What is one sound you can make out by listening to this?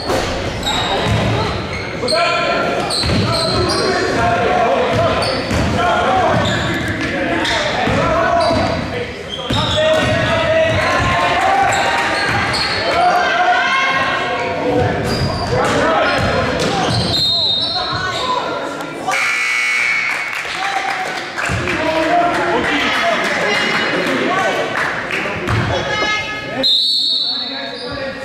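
A crowd of young spectators shouts and cheers in a large echoing gym.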